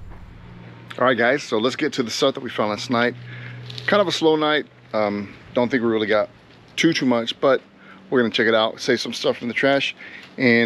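A middle-aged man talks with animation close to the microphone.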